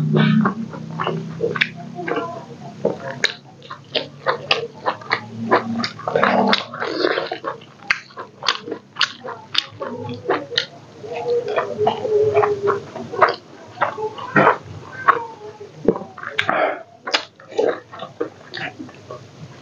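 A man chews food noisily and smacks his lips close to a microphone.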